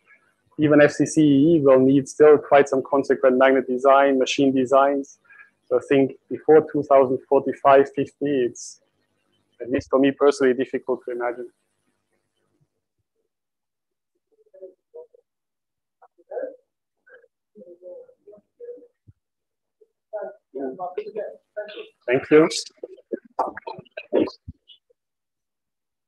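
A man speaks calmly into a microphone, heard through an online call.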